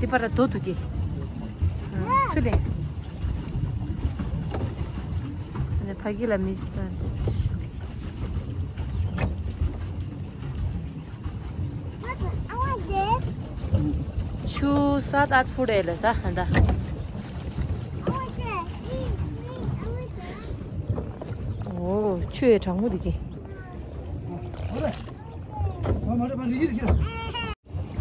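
Wind rumbles across the water outdoors.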